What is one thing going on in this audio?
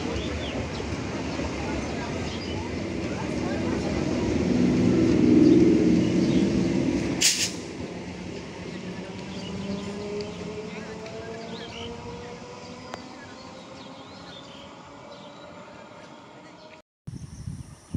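A passenger train rattles past close by and slowly fades away.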